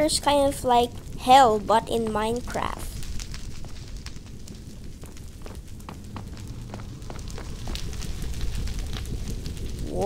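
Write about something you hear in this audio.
Bony skeleton creatures rattle close by.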